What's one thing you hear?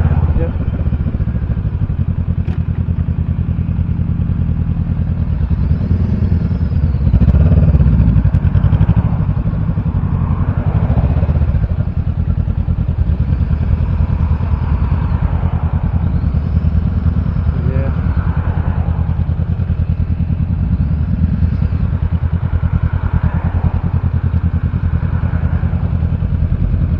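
A motorcycle engine idles and rumbles steadily close by.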